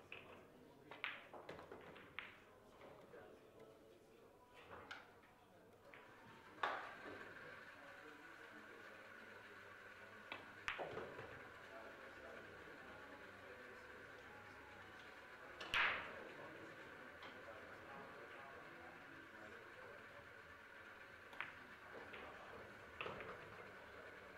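Billiard balls click together sharply.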